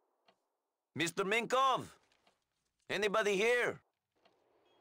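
A man calls out questioningly.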